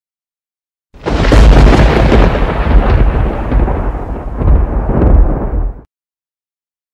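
Thunder crashes and rumbles loudly, then stops abruptly.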